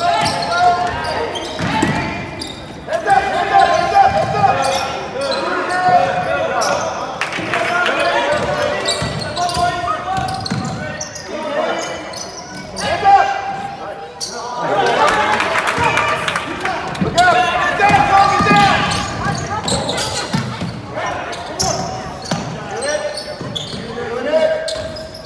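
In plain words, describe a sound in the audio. Spectators cheer and shout nearby.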